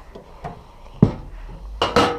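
A metal grill lid bangs shut.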